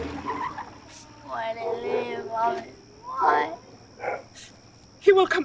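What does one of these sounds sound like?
A young boy cries and asks tearfully, close by.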